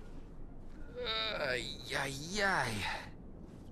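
A man speaks slowly in a deep, mocking voice.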